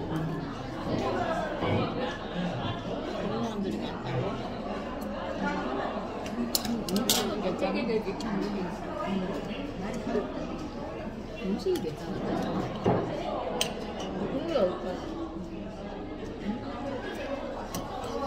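A fork scrapes and clinks against a metal pan.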